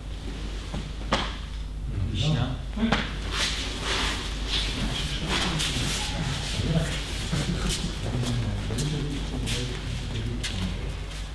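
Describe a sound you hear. Feet shuffle and clothing rustles on mats as people stand up.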